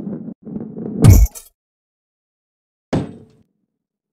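Coins jingle in a quick, bright burst.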